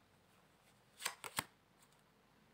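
A card slaps down on a table.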